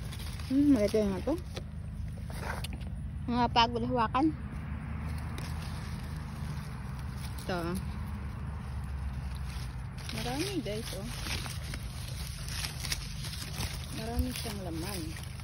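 Leaves rustle as they are brushed aside.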